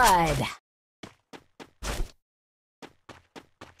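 Footsteps tap lightly on the ground.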